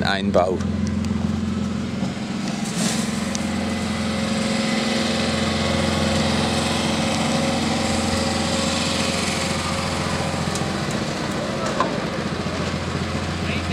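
Diesel engines of heavy machines rumble steadily nearby.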